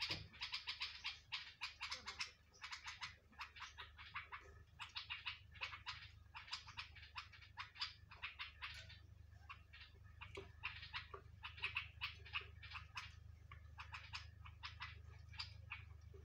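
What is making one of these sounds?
Small birds chirp rapidly and continuously close by.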